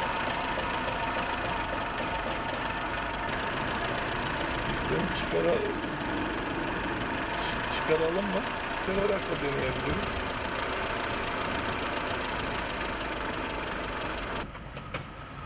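A car engine idles with a steady hum.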